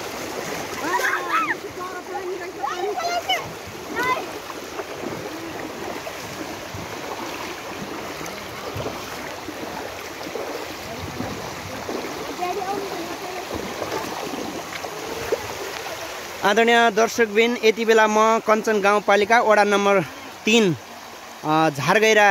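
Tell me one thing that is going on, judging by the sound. Floodwater rushes and gurgles steadily outdoors.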